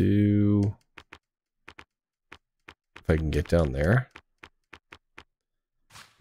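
Short menu clicks tick as selections change.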